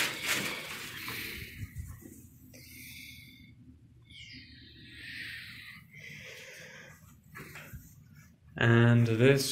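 Fabric rustles as hanging clothes are pushed aside.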